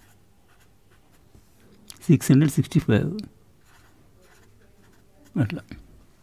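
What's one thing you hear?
A marker pen squeaks softly across paper.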